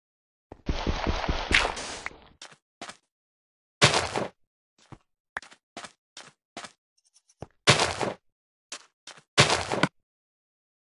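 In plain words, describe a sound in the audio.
Sandy blocks crunch and thud as they are dug and placed.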